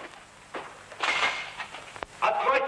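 Two men scuffle and grapple with each other.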